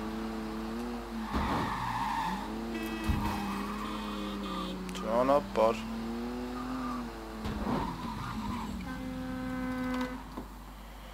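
A car engine hums and revs as the car drives along.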